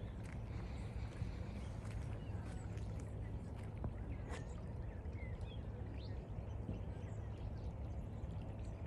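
A small stream trickles softly nearby.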